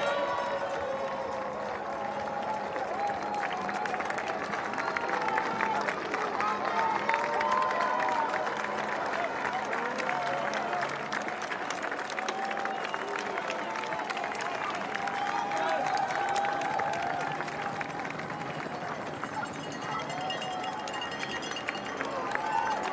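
A large crowd cheers and claps outdoors.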